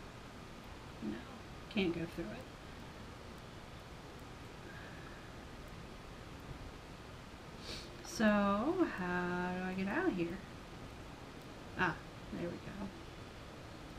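A young woman speaks in short bursts close to a microphone.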